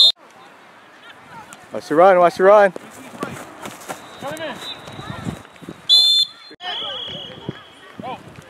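Spectators cheer and shout from the sideline.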